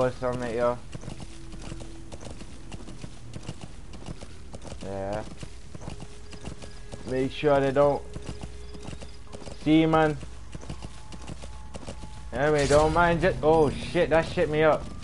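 A horse's hooves clop steadily on a dirt road.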